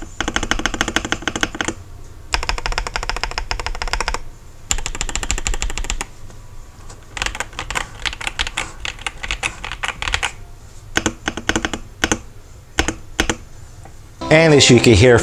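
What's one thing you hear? Keys on a keyboard clack in quick bursts of typing.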